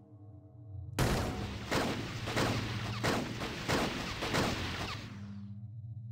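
Gunshots fire in quick succession and echo.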